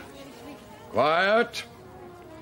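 An elderly man speaks loudly and clearly, as if addressing a group.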